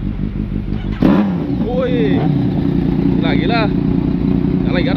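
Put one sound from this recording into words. A motorcycle engine revs up loudly and roars.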